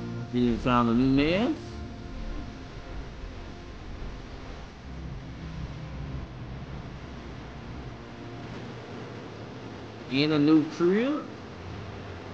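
A woman exclaims loudly in a rising, sing-song voice.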